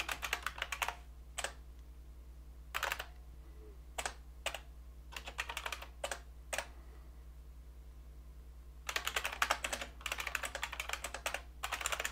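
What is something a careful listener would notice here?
Keys clack on a keyboard in quick bursts.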